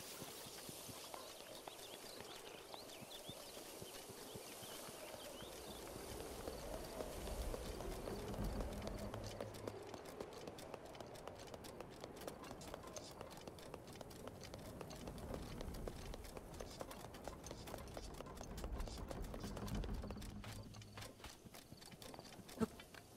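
Footsteps tread over rock and grass.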